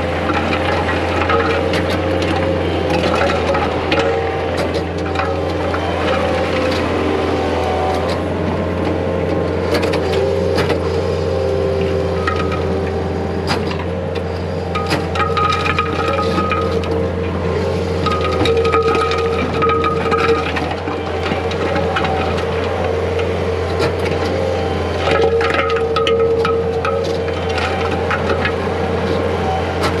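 A rotary rake attachment grinds and rattles through loose dirt and stones.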